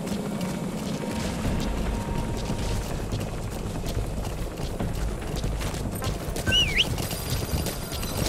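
Footsteps run over dry ground.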